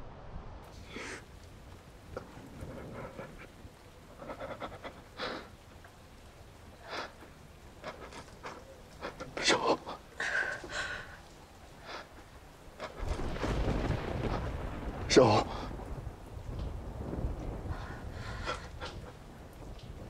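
A man speaks in a strained, distressed voice close by.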